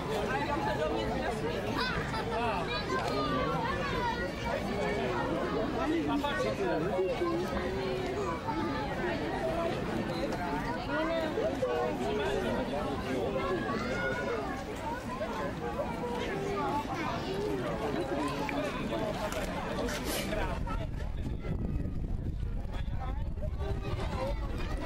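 Pigs grunt and snuffle while rooting in the grass.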